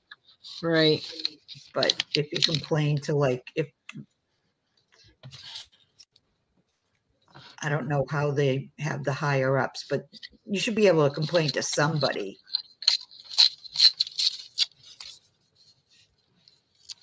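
Paper rustles and crinkles softly.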